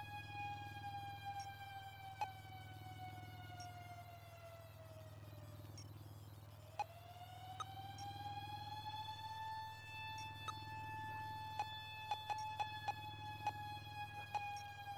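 A high electronic tone slowly glides down, fades out, then glides back up and holds steady.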